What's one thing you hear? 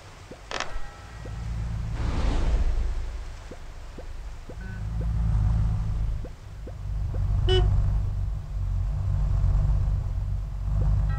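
Cartoon cars rumble and whoosh past.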